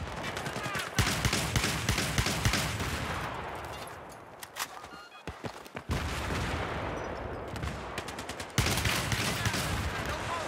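An automatic rifle fires rapid bursts close by.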